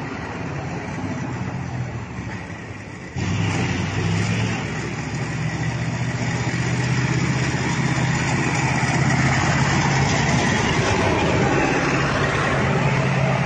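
An armoured vehicle's engine rumbles loudly as it passes close by.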